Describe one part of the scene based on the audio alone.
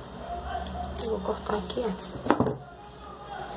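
Scissors snip through ribbon.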